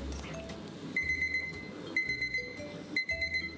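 A kitchen timer beeps.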